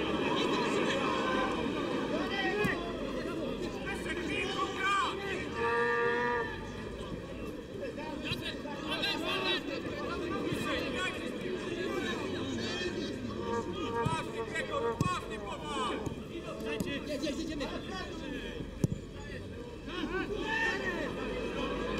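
A stadium crowd cheers in the distance.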